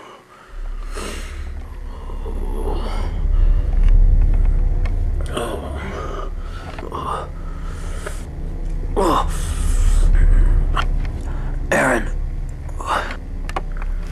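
A man groans and moans in pain, close by.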